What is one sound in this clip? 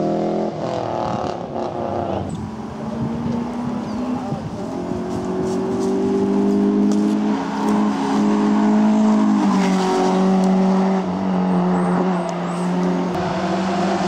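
A rally car engine roars and revs hard as it speeds past.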